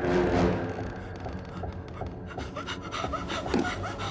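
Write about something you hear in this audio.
A young woman gasps in fright close by.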